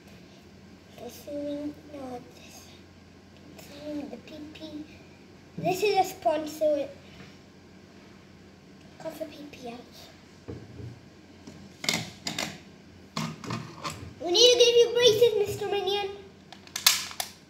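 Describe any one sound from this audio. A young boy talks close by, calmly and with pauses.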